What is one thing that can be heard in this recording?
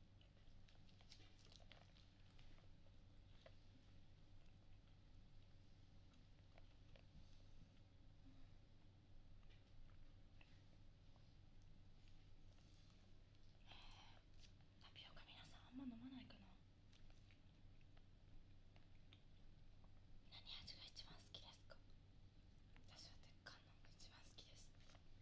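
Fingers tap and scratch on a plastic container close to a microphone.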